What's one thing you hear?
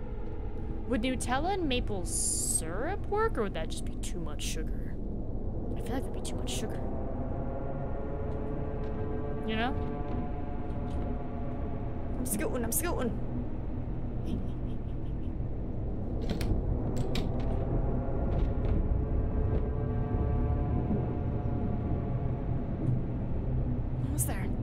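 Low, eerie music drones steadily.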